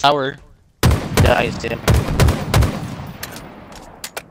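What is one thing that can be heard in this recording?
A rifle fires several loud, booming shots that echo away.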